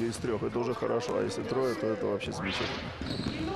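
Basketballs bounce on a hard floor in an echoing hall.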